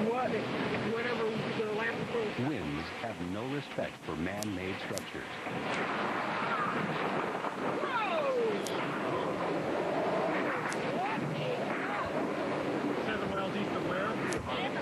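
Heavy rain lashes down in a storm.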